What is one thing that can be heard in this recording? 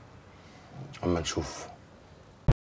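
A man speaks in a low, serious voice nearby.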